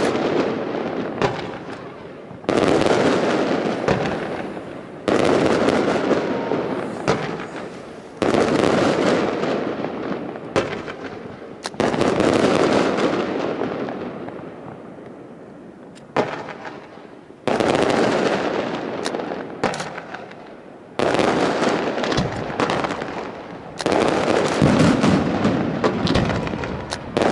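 Fireworks burst with loud booms that echo and rumble away.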